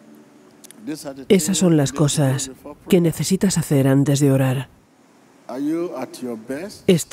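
A middle-aged man speaks forcefully through a microphone in a large echoing hall.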